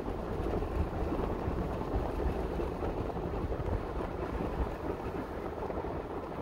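A car rumbles steadily along a road.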